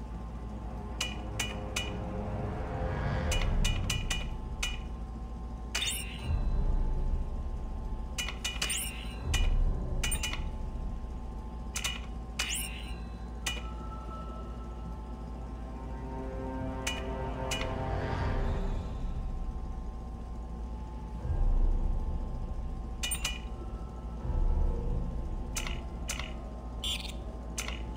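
Short electronic beeps and clicks sound as menu selections change.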